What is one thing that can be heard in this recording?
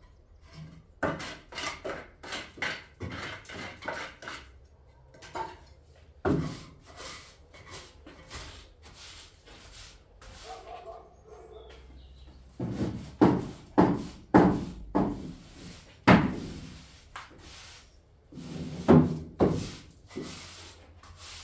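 A broom sweeps in short, scratchy strokes across a concrete floor.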